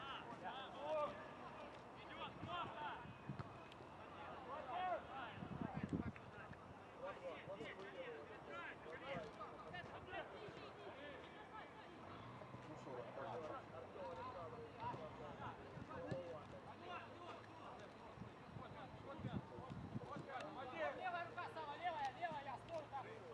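Men on a football pitch shout and call to each other outdoors.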